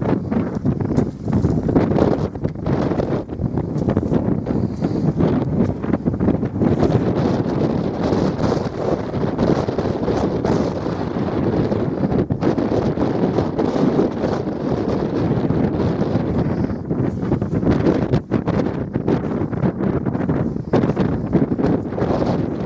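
Wind blows steadily and rumbles against the microphone outdoors.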